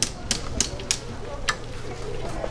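A knife knocks sharply on a wooden board.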